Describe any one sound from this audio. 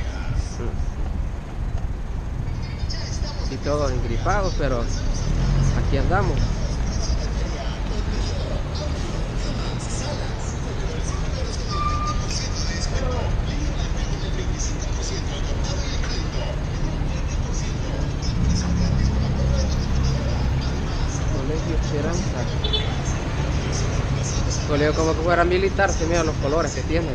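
Car engines hum nearby in slow traffic.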